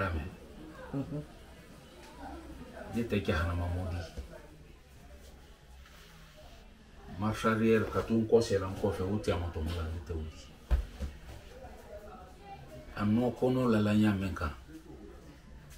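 An elderly man speaks calmly and earnestly, close by.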